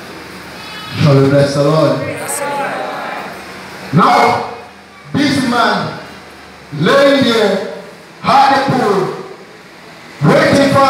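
A young man preaches with animation through a microphone and loudspeakers, in an echoing hall.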